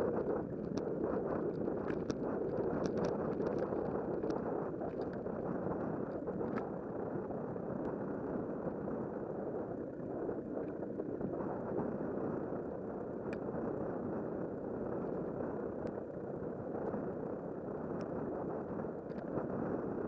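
Wind rushes steadily and loudly past while riding outdoors.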